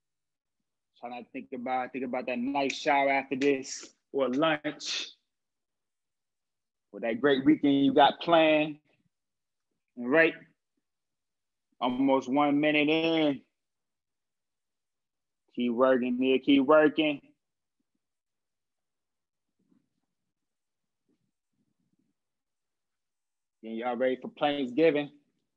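A young man speaks calmly into a nearby microphone, in short bursts with pauses, as if over an online call.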